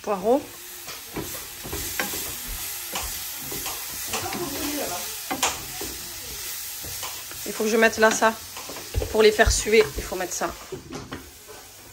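Leeks sizzle gently in a hot frying pan.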